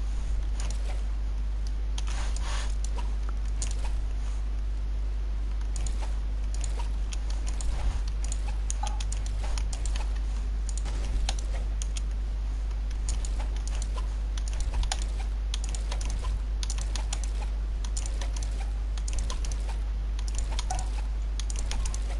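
Building pieces snap into place with quick, sharp clicks.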